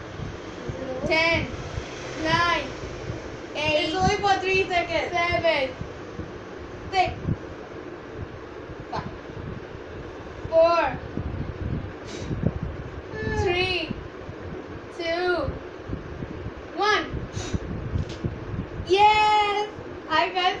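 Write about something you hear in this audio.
A young girl laughs nearby.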